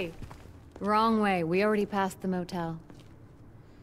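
A young woman calls out loudly and with animation.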